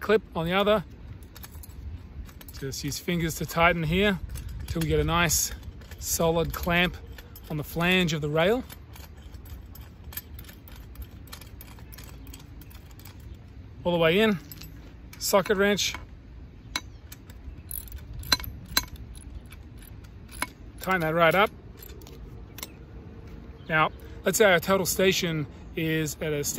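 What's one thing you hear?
A metal clamp clicks and scrapes against a steel rail.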